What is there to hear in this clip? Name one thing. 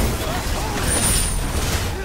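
A fiery blast booms.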